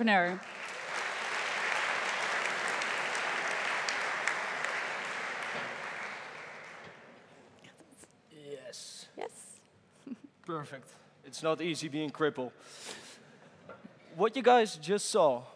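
A woman speaks over a loudspeaker in a large echoing hall.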